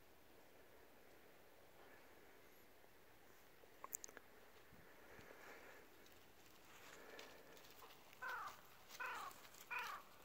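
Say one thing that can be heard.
A dog's paws rustle through dry leaves.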